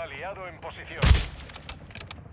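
A rifle fires a single loud, sharp shot.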